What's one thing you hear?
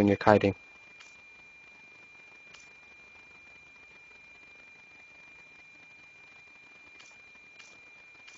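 Soft menu blips click as a selection changes.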